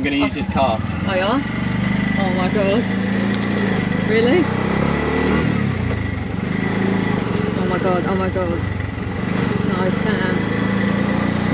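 A small motor engine hums steadily while driving.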